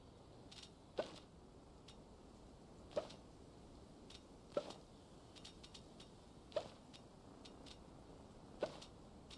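Soft bubbly pops sound every two seconds or so as game items are moved.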